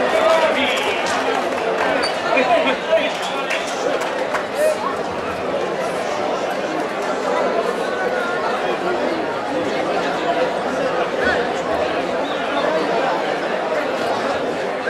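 A large crowd of men and women chatters and shouts outdoors.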